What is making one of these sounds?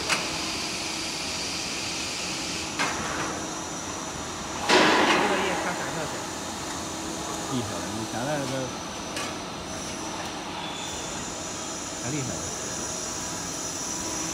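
Factory machinery hums steadily.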